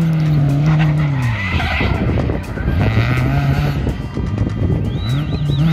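The exhaust of a rally car pops and crackles off the throttle.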